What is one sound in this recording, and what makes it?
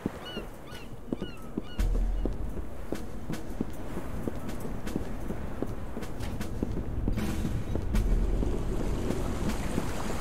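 Footsteps thud quickly across hollow wooden planks.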